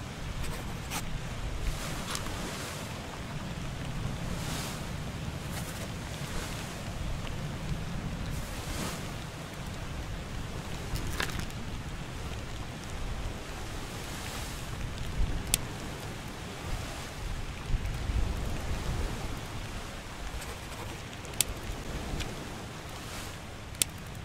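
Short sharp clicks sound now and then.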